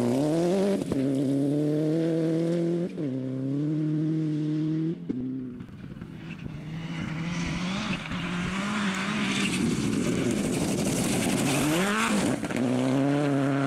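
A rally car engine revs hard and roars as the car shifts gears.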